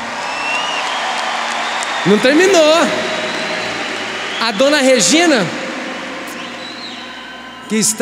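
A large crowd cheers and applauds in a wide open space.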